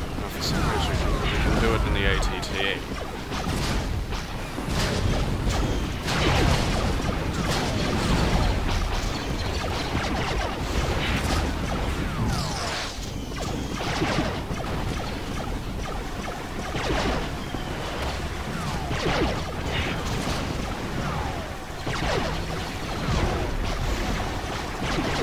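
Laser shots zip and whine past.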